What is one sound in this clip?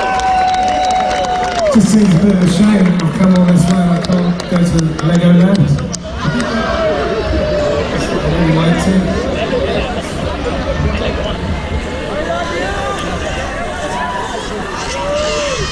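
A band plays live music loudly through a big sound system.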